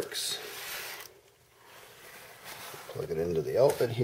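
A plug scrapes and clicks into a wall socket.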